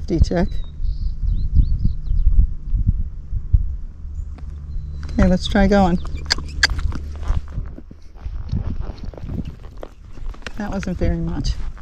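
A horse's hooves clop steadily on a paved road.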